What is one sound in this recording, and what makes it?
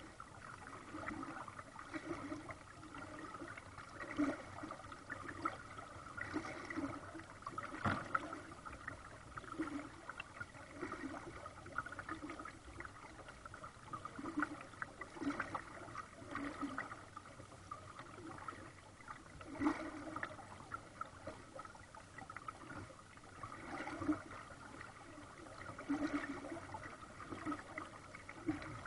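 Water laps and splashes against the hull of a small boat.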